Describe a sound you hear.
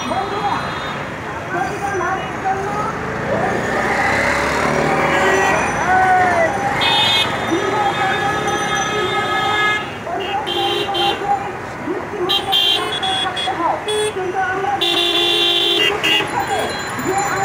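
Scooter engines hum past on a busy street.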